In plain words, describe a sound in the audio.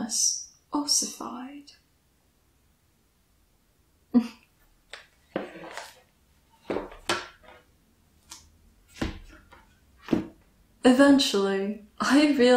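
A young woman speaks softly and calmly, close to a microphone.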